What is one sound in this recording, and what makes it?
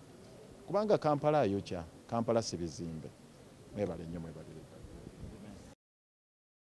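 A man speaks with animation close to microphones.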